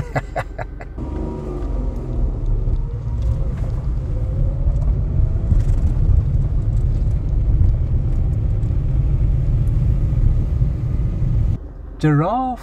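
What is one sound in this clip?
A car drives along a gravel road with a low, steady rumble.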